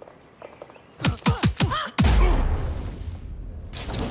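Heavy thuds land as a person is knocked to the floor.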